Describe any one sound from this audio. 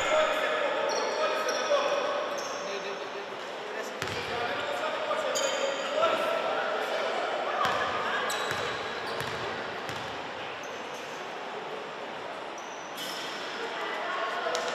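Young players and spectators call out and chatter in an echoing hall.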